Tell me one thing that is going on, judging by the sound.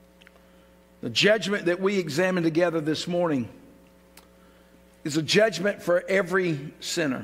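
An elderly man speaks clearly and deliberately into a microphone.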